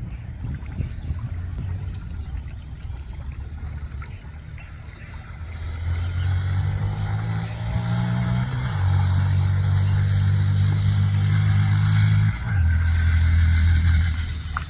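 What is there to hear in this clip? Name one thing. A small motorcycle engine hums steadily nearby, shifting pitch as it rides.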